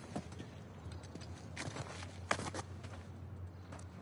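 A man's hands grip and scrape on rough stone while climbing.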